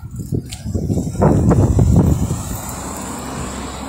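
A car drives by on the road nearby.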